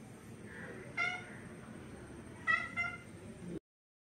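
A kitten mews in short high cries close by.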